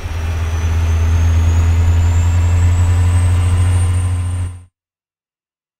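A diesel semi truck engine drones while cruising on a highway.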